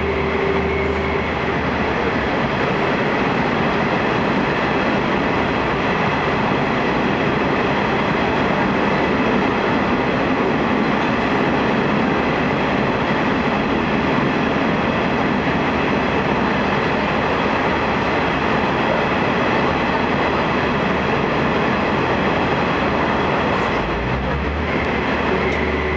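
A train rumbles steadily along.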